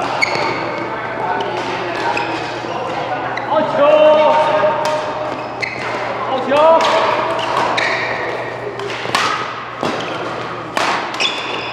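Badminton rackets smack a shuttlecock in a large echoing hall.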